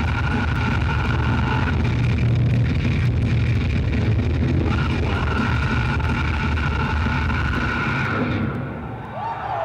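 A rock band plays loudly through powerful speakers.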